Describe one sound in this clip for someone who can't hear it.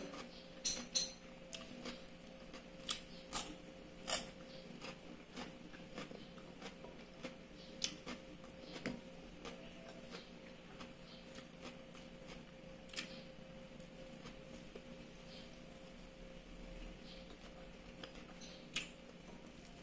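A woman chews food noisily close by.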